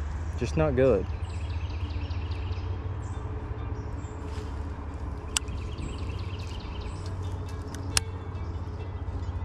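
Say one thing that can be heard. A fishing reel clicks steadily as its line is wound in.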